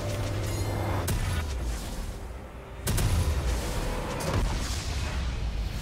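Video game battle effects clash and boom loudly.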